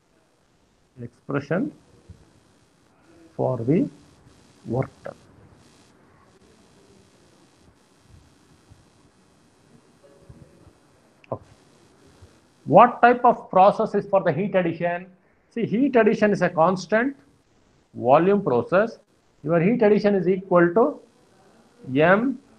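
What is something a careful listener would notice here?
A man speaks calmly in short phrases through a microphone, with pauses.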